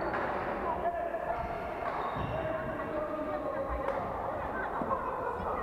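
Sports shoes squeak sharply on a court floor in a large echoing hall.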